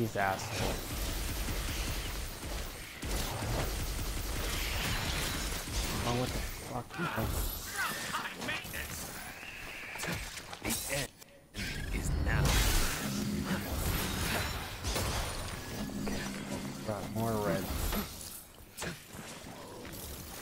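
Blades slash and strike in quick bursts during a fight.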